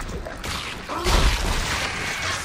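A heavy armoured boot stomps down with a wet crunch.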